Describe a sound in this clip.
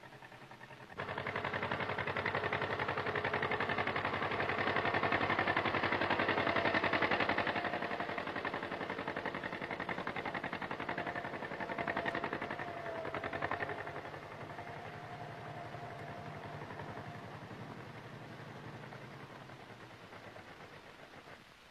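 A tractor engine chugs steadily, then slowly fades.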